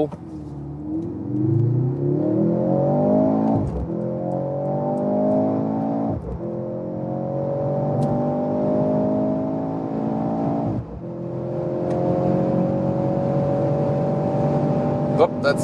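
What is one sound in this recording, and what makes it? A car engine roars as it speeds up hard, rising in pitch and dropping briefly at each gear change.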